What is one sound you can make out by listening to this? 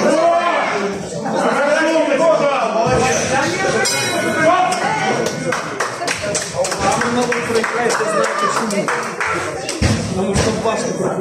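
A crowd of adults and children talks and cheers loudly nearby.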